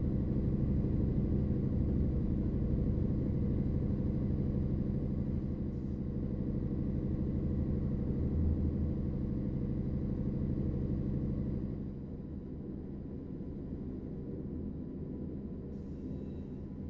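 A truck engine drones steadily, easing off to a quieter hum.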